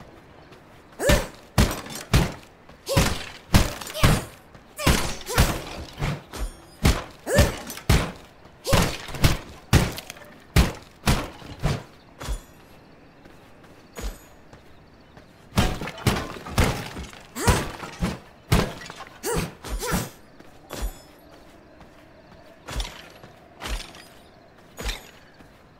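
Sharp slashing hits strike again and again in quick bursts.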